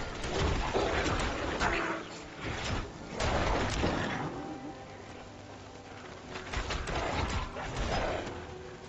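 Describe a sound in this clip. Monsters snarl and growl as they attack.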